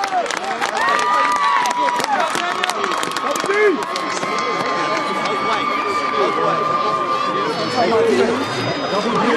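Many people talk at once nearby.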